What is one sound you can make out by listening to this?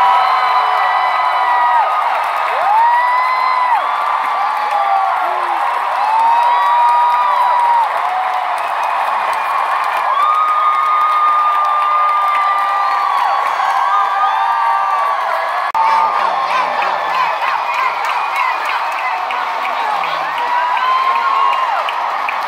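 A band plays loud music through speakers.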